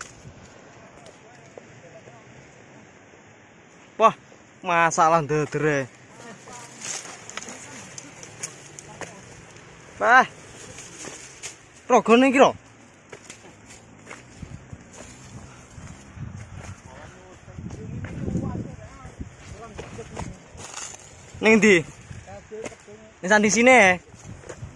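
Footsteps scrape and crunch over dry rocks and leaves.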